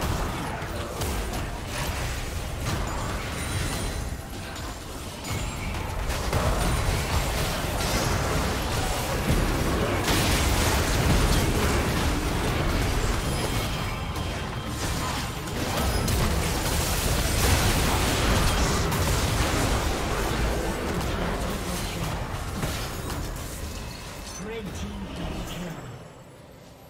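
Spells and attacks crackle and blast in a fast battle.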